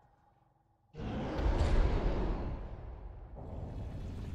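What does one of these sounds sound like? A huge creature crashes heavily to the ground with a deep rumble.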